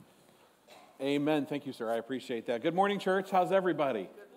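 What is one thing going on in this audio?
A man speaks loudly into a microphone in a large room.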